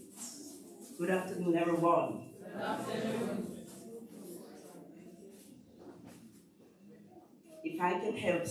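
A woman speaks into a microphone, heard through a loudspeaker in an echoing room.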